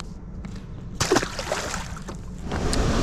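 A fish drops back into the water with a splash.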